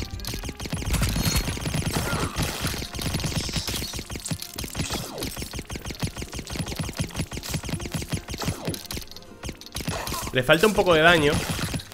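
Rapid shots crackle from a video game.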